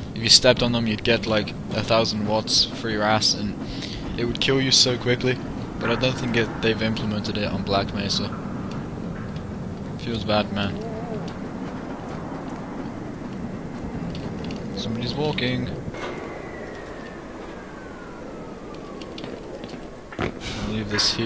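A rail cart rumbles along tracks in a tunnel.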